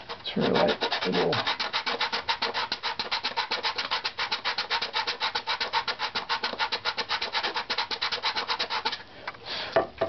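A sanding block rubs back and forth quickly over wood.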